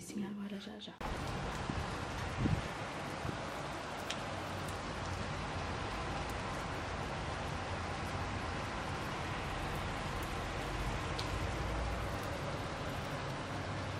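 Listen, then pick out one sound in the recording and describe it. Heavy rain pours down steadily outdoors.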